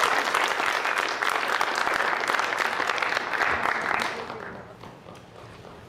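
An audience applauds in a large hall, then the clapping fades out.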